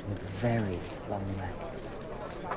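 A young woman speaks softly and playfully up close.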